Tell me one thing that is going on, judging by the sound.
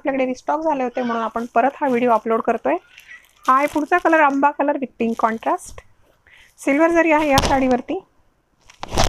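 A woman speaks clearly and with animation into a close microphone.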